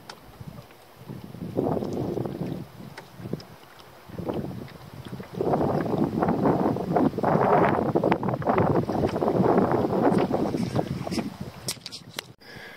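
Water laps and splashes against a small boat.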